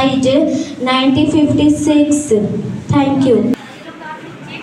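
A young girl speaks loudly and clearly into a microphone.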